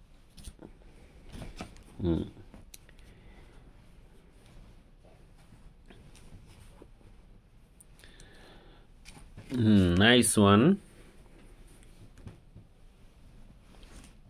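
Cloth rustles softly as it is laid out and smoothed.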